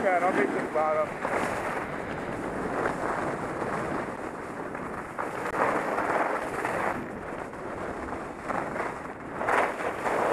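Wind rushes loudly past, gusting up and down.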